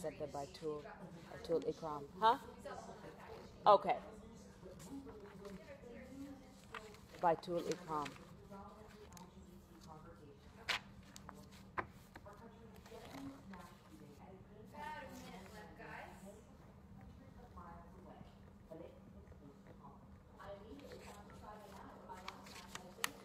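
A middle-aged woman speaks calmly and close by, through a microphone.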